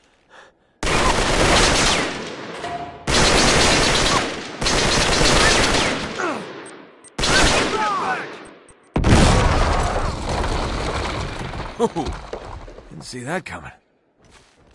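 Loud explosions boom nearby, one after another, each rumbling away.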